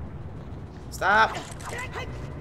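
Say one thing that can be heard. A game character's sword swishes.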